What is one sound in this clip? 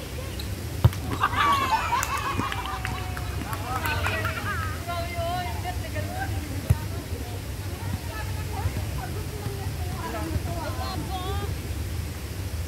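Young people call out and shout to each other outdoors.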